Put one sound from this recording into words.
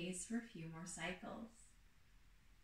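A woman speaks calmly and close by, giving instructions.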